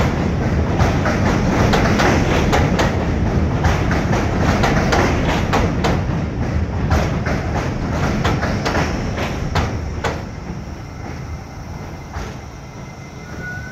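A subway train rumbles close by and slowly fades.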